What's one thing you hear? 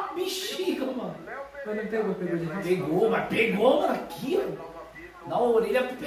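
A second young man laughs close by.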